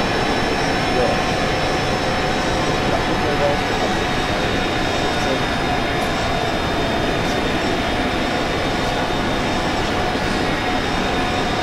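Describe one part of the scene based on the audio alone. Jet engines roar steadily with a high whine.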